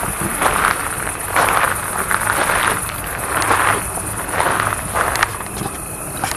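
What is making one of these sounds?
Footsteps crunch slowly on gravel.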